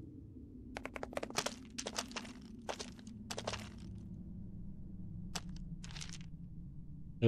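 Soft footsteps patter on stone.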